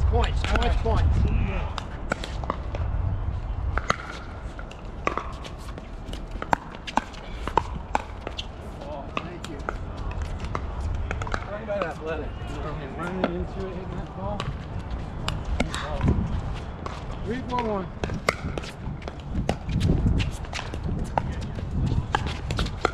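Adult players talk and call out nearby.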